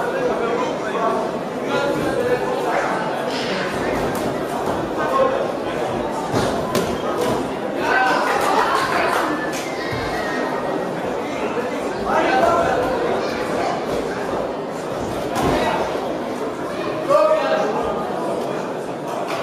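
A crowd of spectators shouts and calls out in an echoing hall.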